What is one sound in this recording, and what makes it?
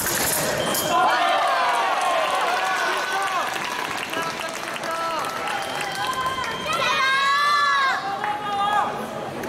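A young woman shouts in triumph.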